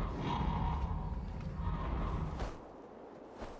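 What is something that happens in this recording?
Wind rushes loudly, as if in flight, then drops away.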